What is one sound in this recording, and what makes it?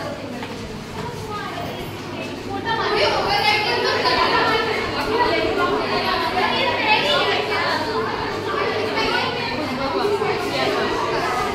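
Many young girls chatter nearby in a noisy room.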